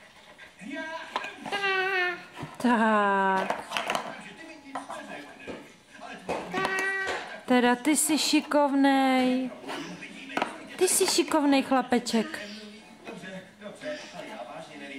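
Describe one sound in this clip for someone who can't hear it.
Plastic toy blocks clack and knock together.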